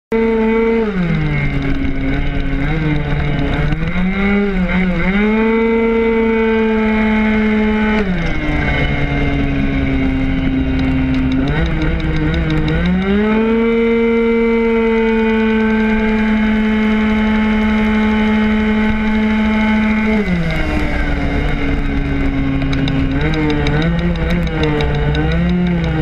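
A kart engine whines close by, rising and falling in pitch as it speeds up and slows down.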